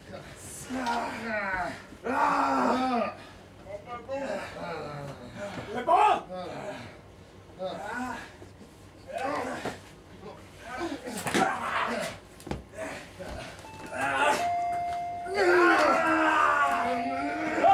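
A small crowd of spectators shouts close by.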